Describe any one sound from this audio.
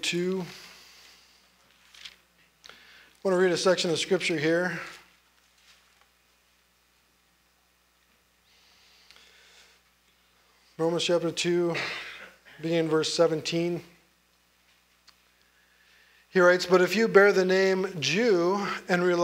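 A middle-aged man speaks slowly and deliberately into a microphone, pausing between phrases.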